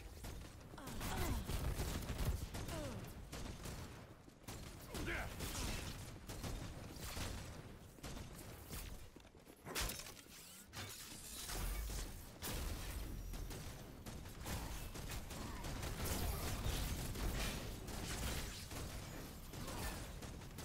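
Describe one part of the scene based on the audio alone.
Magic strikes whoosh and thud against armour.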